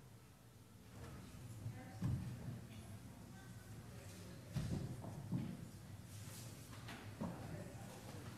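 Small footsteps thump softly across a floor in a large echoing room.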